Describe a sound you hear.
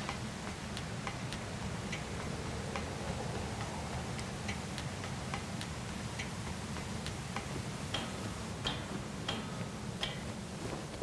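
Footsteps clank steadily on a metal ladder.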